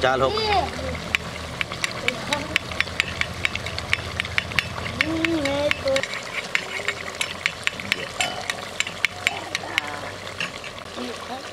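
A metal ladle clinks and scrapes against a clay pot.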